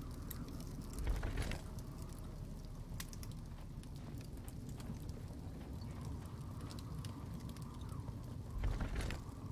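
A stone tile clicks and grinds as it is pressed into a wall.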